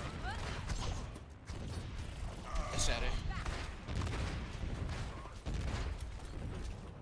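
Gunfire and blasts crackle in quick bursts.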